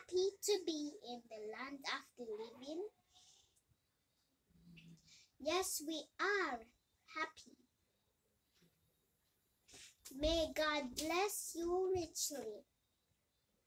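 A young girl speaks close by in a high voice, in short bursts with pauses.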